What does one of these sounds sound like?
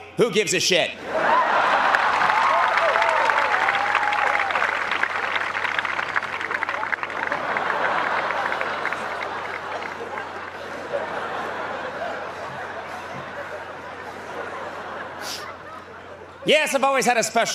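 A large crowd laughs and applauds loudly, then slowly quiets.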